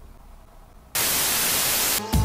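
Loud static hiss fills the air.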